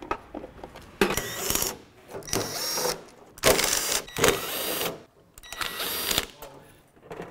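A power drill whirs in short bursts, driving screws.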